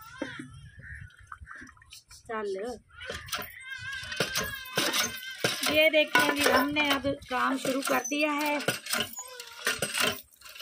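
Metal dishes clink and clatter against each other.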